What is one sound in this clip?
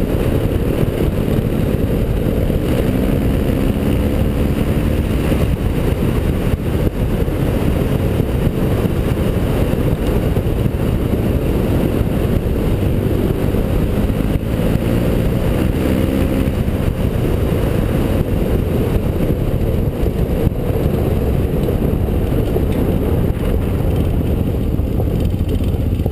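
A motorcycle engine runs at cruising speed.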